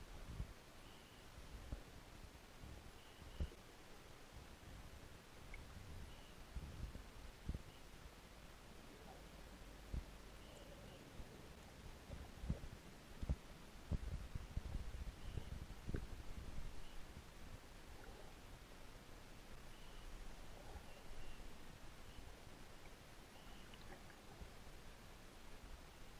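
Water rumbles low and muffled all around, with occasional dull thumps, as heard underwater.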